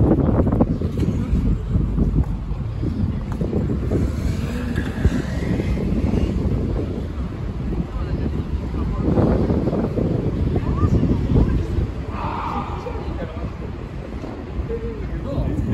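City traffic rumbles steadily in the distance, outdoors.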